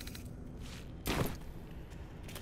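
A game menu closes with a soft whoosh.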